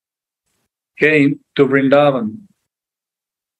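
A man speaks briefly and calmly into a microphone over an online call.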